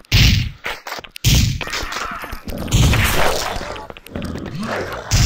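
Gunshots ring out in loud, booming bursts.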